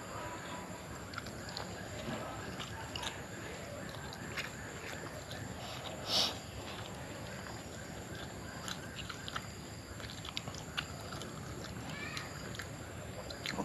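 A man chews food noisily.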